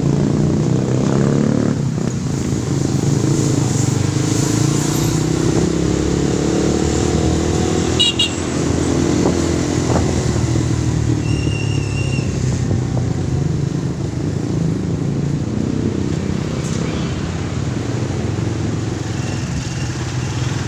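A motorcycle engine rumbles steadily up close as it rides along a street.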